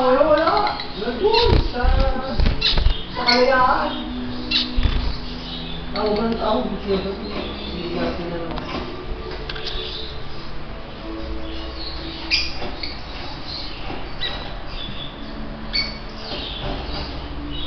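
Small finches chirp and cheep in short high calls.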